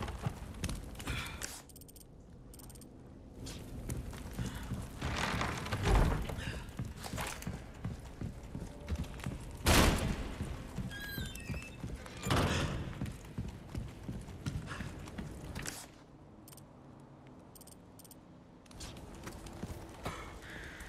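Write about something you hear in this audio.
Footsteps thump on wooden floorboards.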